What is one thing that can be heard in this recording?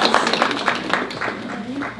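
An older woman speaks into a microphone.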